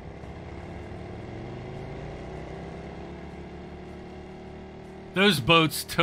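A small motorboat engine hums steadily.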